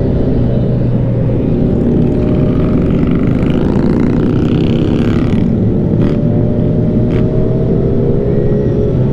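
Wind roars past at speed.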